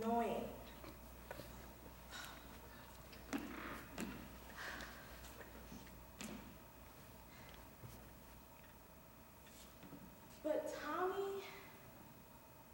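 A young woman speaks in an echoing hall, pausing often.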